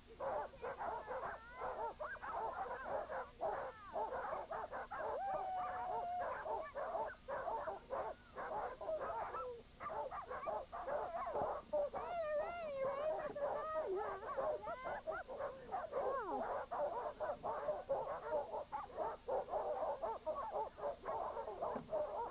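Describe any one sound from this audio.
Many sled dogs bark and yelp outdoors.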